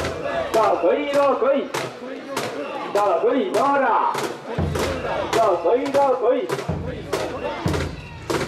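A crowd of men chant loudly in rhythm outdoors.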